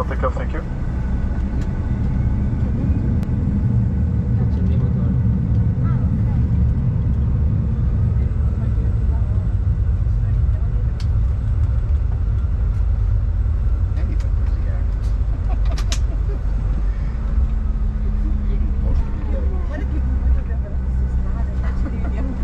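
A jet airliner's engines hum with a deep, steady rumble.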